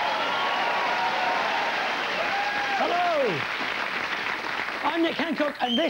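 A studio audience applauds and cheers.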